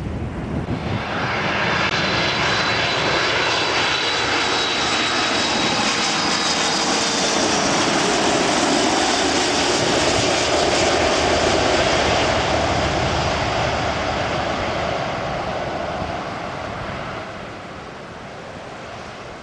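A twin-engine wide-body jet airliner on landing approach roars low overhead, then fades into the distance.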